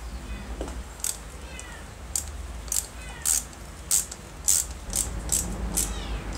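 A ratchet wrench clicks rapidly as it turns a screw.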